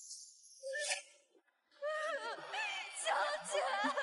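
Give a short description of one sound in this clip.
A young woman sobs and pleads tearfully.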